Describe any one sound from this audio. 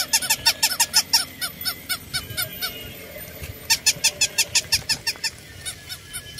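A battery-powered toy dog yaps with rapid electronic barks.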